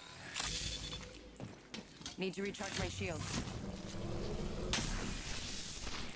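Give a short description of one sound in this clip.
A shield recharger whirs and hums in a video game.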